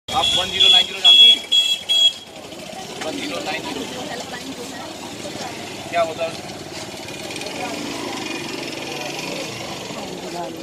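A crowd of women talk over one another outdoors.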